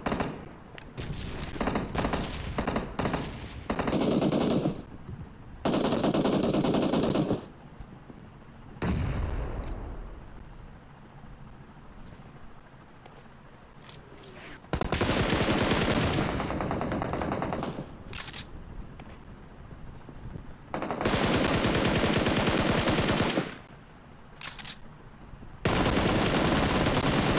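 Footsteps run over the ground.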